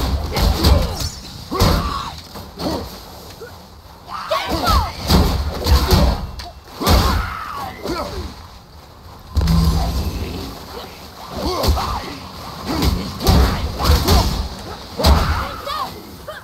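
Heavy blows thud and crash in a fight.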